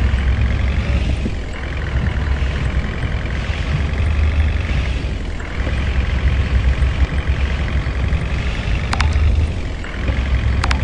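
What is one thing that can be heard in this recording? A bus engine hums steadily as the bus speeds up along a road.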